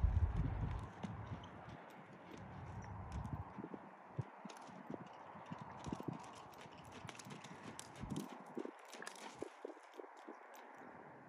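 A horse's hooves thud steadily on soft sand.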